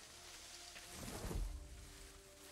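Leaves rustle as someone pushes through bushes.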